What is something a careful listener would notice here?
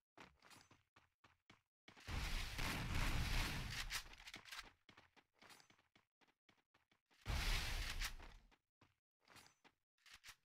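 Footsteps crunch on grass and rock.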